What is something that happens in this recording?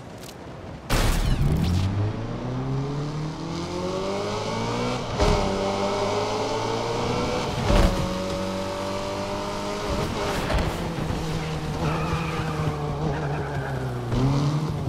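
A car engine revs up and roars, shifting gears.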